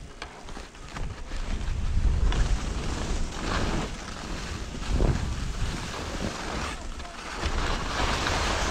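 Skis scrape and swish over crunchy snow.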